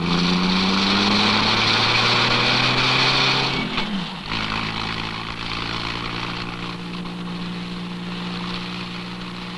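A car engine hums steadily while driving along.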